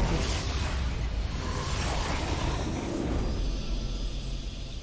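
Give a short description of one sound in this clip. Fighting sound effects crash and whoosh loudly.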